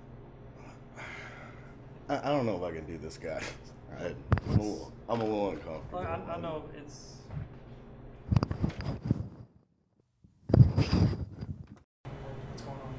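A middle-aged man speaks calmly and with animation close to a microphone.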